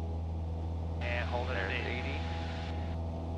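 A man speaks briefly through a headset intercom.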